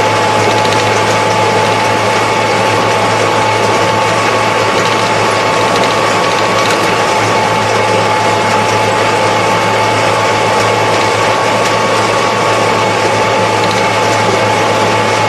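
A tractor engine drones steadily from close by.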